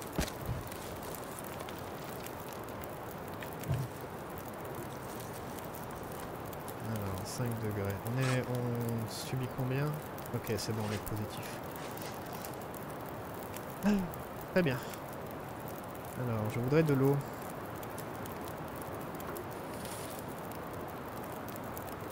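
A log campfire crackles and burns.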